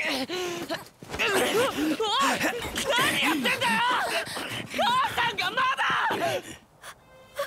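A boy shouts in alarm.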